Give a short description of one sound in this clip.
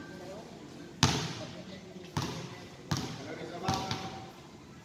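A basketball bounces on a hard court in an echoing hall.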